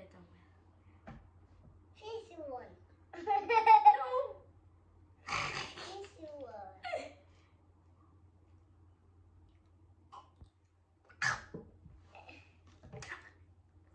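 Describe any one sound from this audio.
A small boy laughs.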